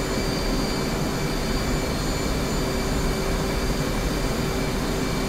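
Aircraft engines and rushing air drone steadily.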